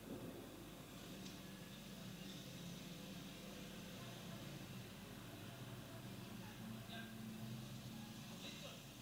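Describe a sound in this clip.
A motorcycle engine idles with a low, steady rumble, heard through loudspeakers in a room.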